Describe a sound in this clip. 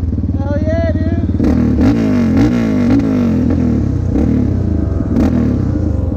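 Motorcycles accelerate past with loud rising engine roars.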